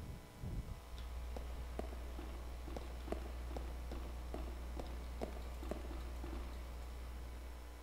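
Footsteps tap on a metal grating.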